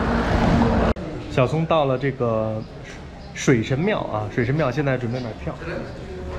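A middle-aged man talks close to the microphone with animation.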